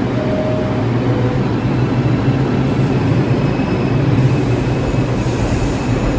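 A subway train rumbles loudly past a platform, its wheels clattering on the rails.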